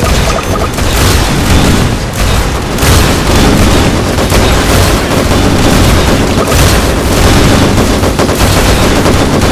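Rapid gunfire and laser blasts crackle without pause in a video game.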